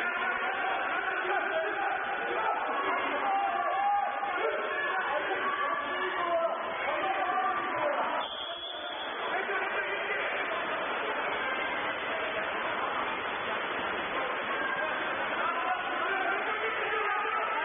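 Water splashes as players swim and thrash in a pool.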